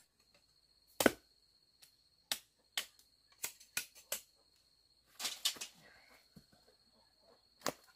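A machete chops sharply into wood with quick knocks.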